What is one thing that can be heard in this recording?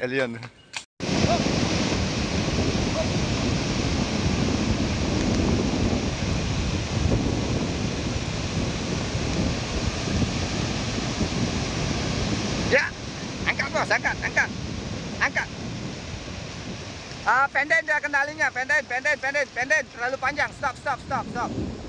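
Ocean surf rushes and breaks on a beach.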